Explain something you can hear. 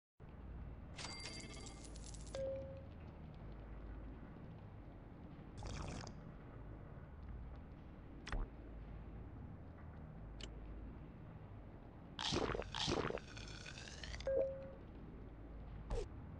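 Game interface sounds chime and whoosh softly.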